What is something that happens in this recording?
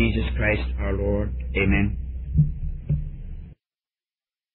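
An elderly man preaches through an old, muffled recording.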